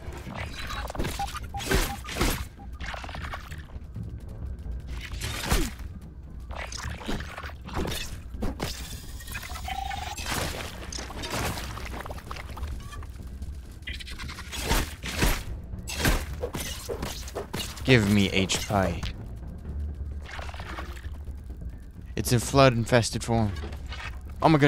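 A weapon thuds repeatedly against a creature.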